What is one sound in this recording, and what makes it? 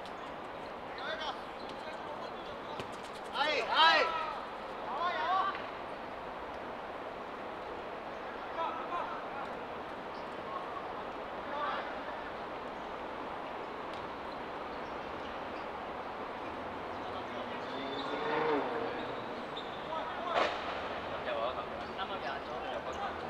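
Young men shout to each other across an outdoor football pitch.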